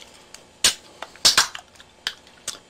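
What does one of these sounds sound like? A can of soda is cracked open with a sharp hiss.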